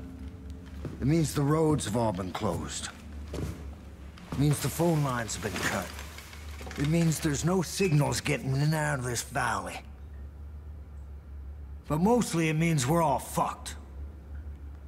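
An older man speaks in a low, gravelly voice, calmly and close by.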